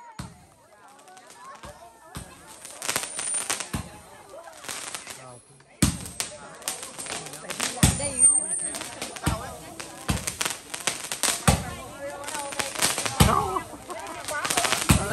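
A crowd of people talks and calls out nearby.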